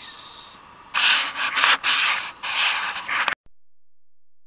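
Hands brush and rustle against a microphone close up.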